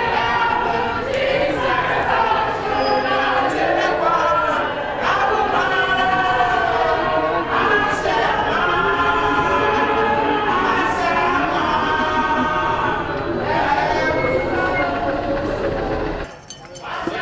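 A crowd of men and women talk and shout excitedly all at once, close by outdoors.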